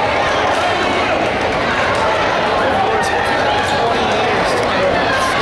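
A crowd murmurs and chatters throughout a large echoing hall.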